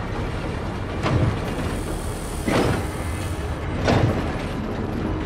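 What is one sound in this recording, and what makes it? Explosions boom in the distance.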